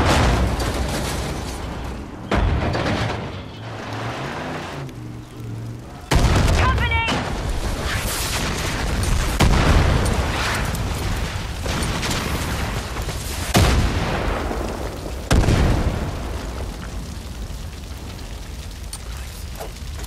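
Flames crackle and roar in burning grass.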